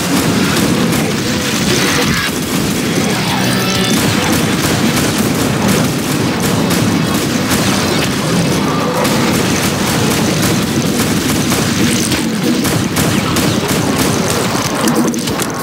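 An automatic rifle fires rapid bursts.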